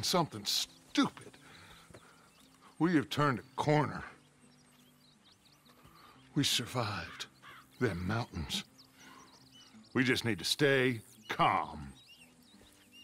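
A man speaks in a low, gruff voice up close.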